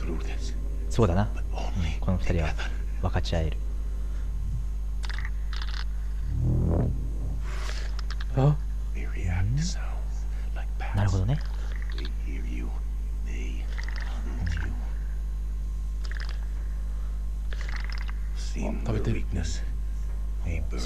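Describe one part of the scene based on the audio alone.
A man whispers urgently and close by.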